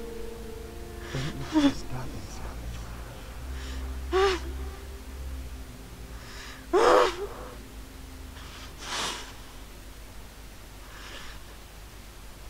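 A young woman speaks in a tense, strained voice close by.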